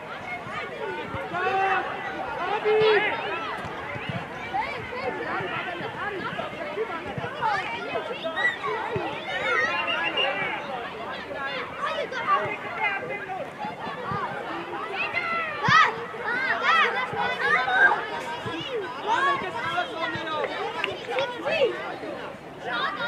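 Children shout and call out across an open outdoor field.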